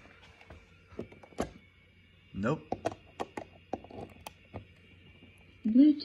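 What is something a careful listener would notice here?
A person handles a small plastic device with clicks and rustles, close by.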